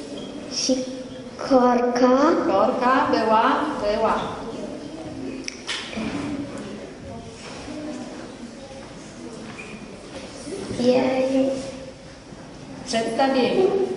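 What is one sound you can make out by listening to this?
A young girl answers softly into a microphone.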